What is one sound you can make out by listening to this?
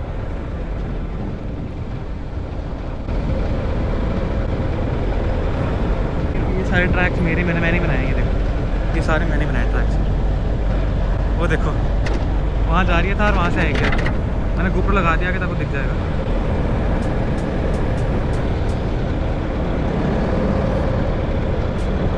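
An off-road vehicle's engine rumbles as it drives over soft sand.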